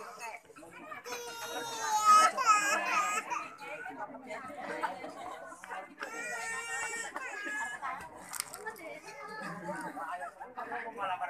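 Several women chatter and laugh nearby.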